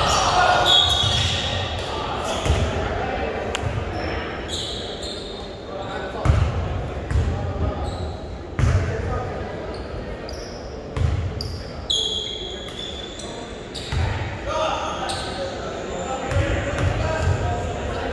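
A crowd murmurs and cheers in the stands.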